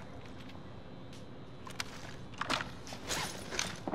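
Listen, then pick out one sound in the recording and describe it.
A gun is reloaded with quick metallic clicks.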